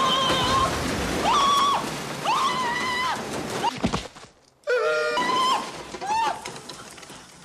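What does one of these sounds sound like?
A man screams in panic.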